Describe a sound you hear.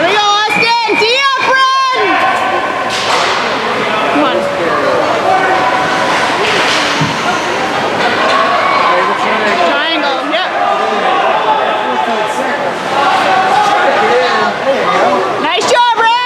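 Spectators chatter and call out nearby in a large echoing hall.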